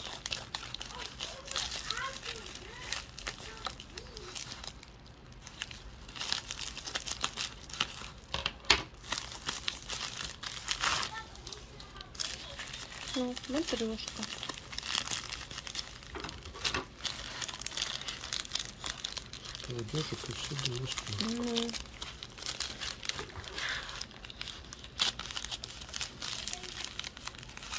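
Scissors snip through a plastic mailing bag.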